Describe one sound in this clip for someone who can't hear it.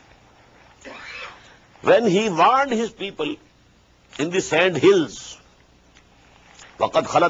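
An elderly man speaks calmly into a close microphone, in bursts with pauses.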